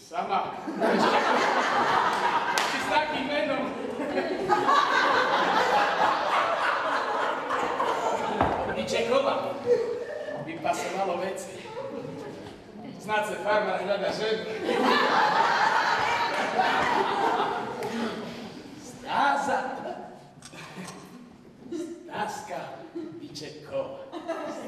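A man speaks with animation, acting on a stage in a hall.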